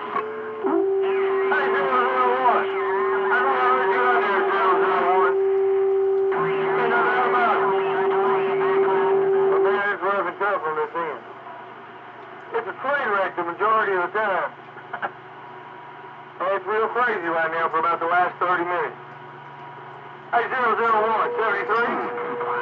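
A radio receiver hisses with faint static.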